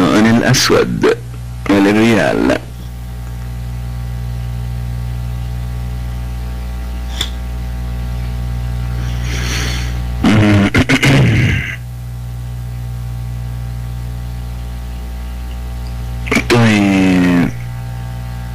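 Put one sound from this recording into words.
A young man speaks through a microphone in short bursts.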